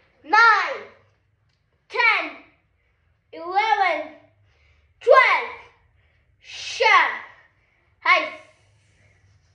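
A young boy shouts loud, sharp calls close by, one after another.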